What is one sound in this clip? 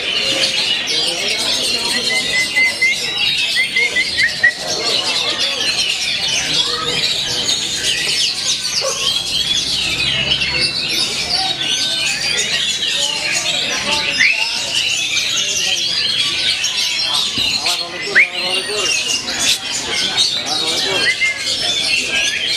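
A songbird sings loud, varied chirps and whistles.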